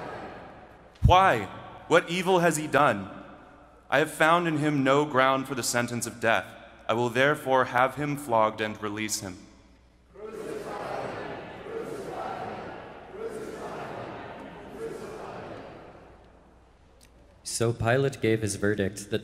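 A man reads aloud through a microphone in a large echoing hall.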